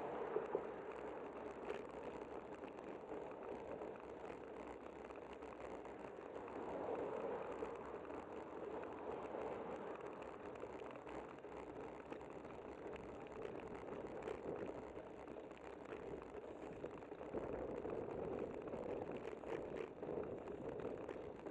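Wind rushes steadily past, loud and buffeting.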